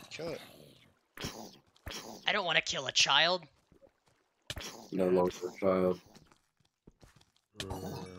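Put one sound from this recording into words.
A zombie groans in a deep, raspy voice.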